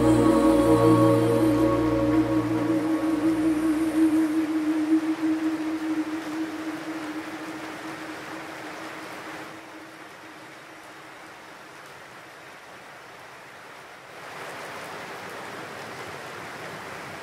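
Rain patters steadily against a window.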